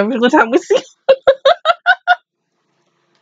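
A young woman laughs in bursts.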